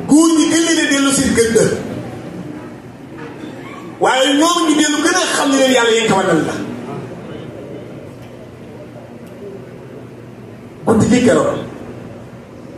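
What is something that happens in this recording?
A man chants loudly in bursts through a microphone.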